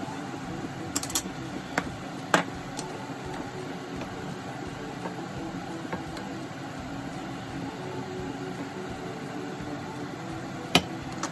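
A wooden spatula knocks and scrapes against a pan.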